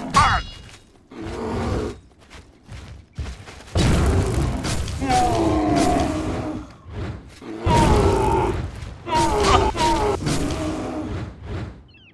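A heavy hammer strikes a body with dull thuds.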